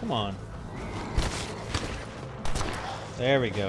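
Heavy blows thud in a close scuffle.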